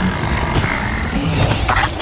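A sudden electric crackle and thud erupts.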